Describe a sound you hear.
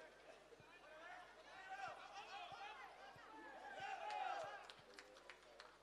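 A crowd cheers and calls out from the stands.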